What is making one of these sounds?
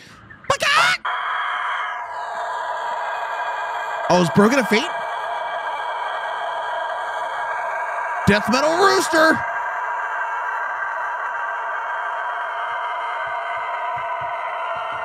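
A rooster crows in a long, drawn-out call.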